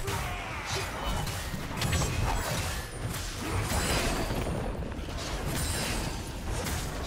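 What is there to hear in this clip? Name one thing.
Game characters strike with sharp hits.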